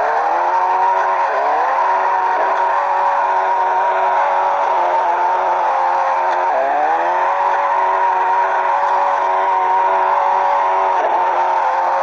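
A car engine revs high and steady, dipping and climbing again between gear shifts.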